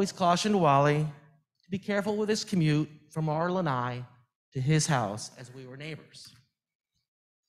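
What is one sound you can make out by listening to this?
A man reads out aloud through a microphone in an echoing room.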